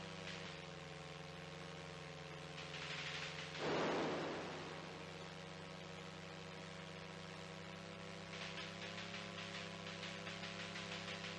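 An electronic engine hum drones steadily.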